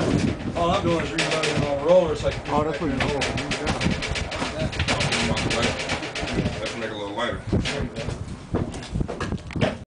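Plastic bread crates clatter as they are handled.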